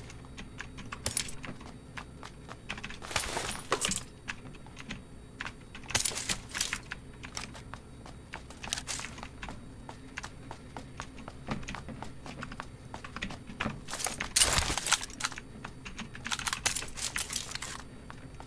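Items are picked up with short rustling clicks.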